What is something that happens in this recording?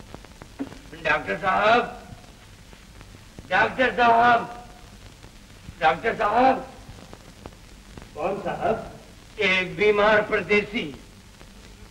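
An elderly man speaks calmly nearby in short phrases.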